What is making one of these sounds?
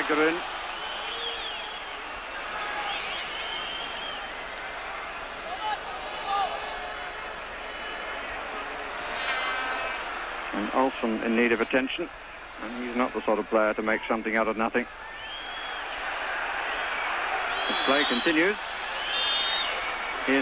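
A large crowd murmurs and roars steadily in an open stadium.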